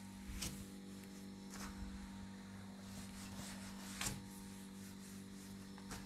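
A man erases a whiteboard with a duster, rubbing softly.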